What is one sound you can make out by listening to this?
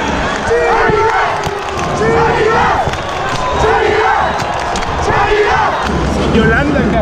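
A man close by shouts and sings with the crowd.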